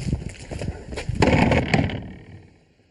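A fist knocks on a wooden door.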